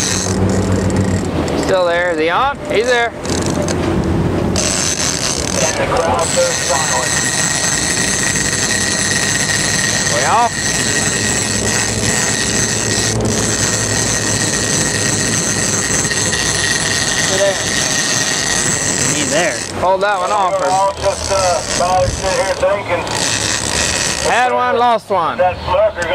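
Waves splash and rush against a boat's hull.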